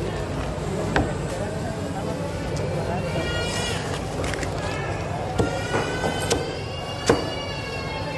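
A cleaver chops through fish on a wooden block.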